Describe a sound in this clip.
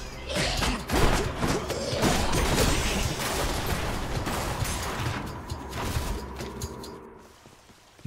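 Magical blasts crash and crackle in quick succession.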